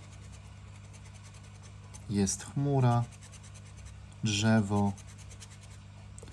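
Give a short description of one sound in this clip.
Someone scratches at a scratch card with a scraper.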